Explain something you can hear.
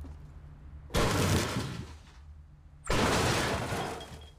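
A pickaxe chops into a wooden canoe with loud cracking blows.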